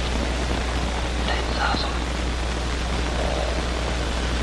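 A man speaks quietly close by.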